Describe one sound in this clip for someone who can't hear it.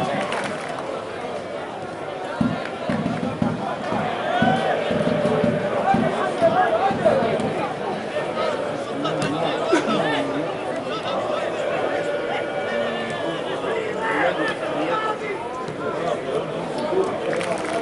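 Spectators murmur and chatter in a stadium.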